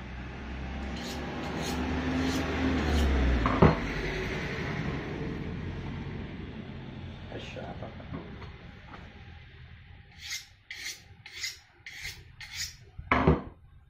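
A knife blade scrapes in quick strokes along a sharpening steel.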